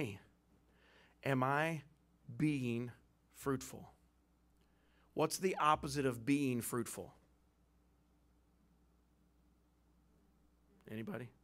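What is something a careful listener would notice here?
A man preaches with animation into a microphone, pausing between phrases.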